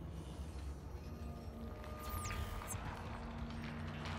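A game menu closes with a short electronic whoosh.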